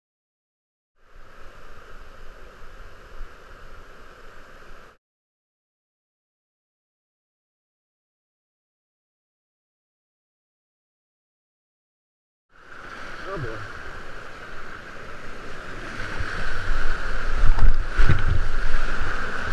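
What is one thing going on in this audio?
Whitewater rapids rush and roar close by.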